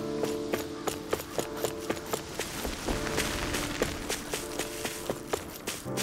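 Quick footsteps run over stone.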